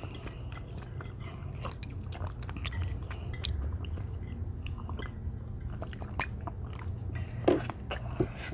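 A young boy slurps a drink.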